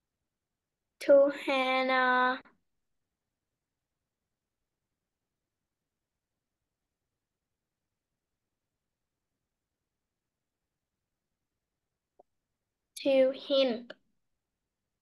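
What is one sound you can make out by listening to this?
A young girl speaks briefly through an online call.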